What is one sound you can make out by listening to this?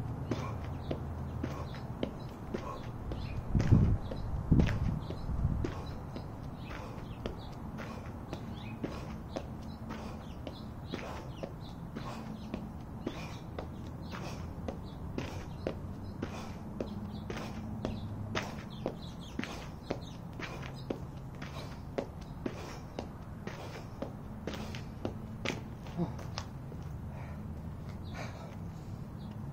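Shoes tap lightly and quickly on gravel in a steady rhythm.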